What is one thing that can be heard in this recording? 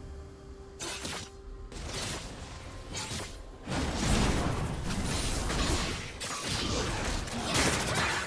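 Game combat sound effects of spells whoosh and crackle in a busy fight.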